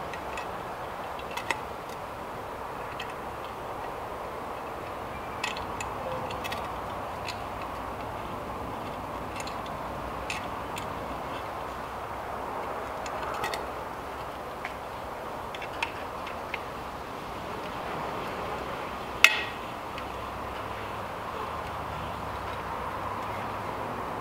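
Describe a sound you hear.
Small metal parts click and clack close by.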